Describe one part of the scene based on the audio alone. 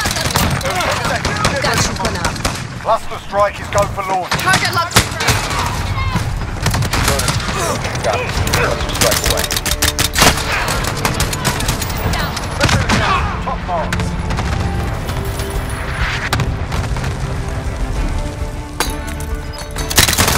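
Gunfire rattles in quick bursts.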